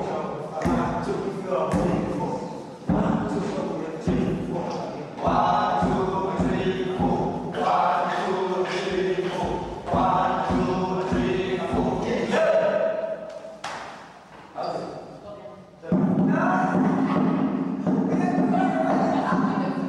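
Several people stamp their feet on a hard floor in rhythm.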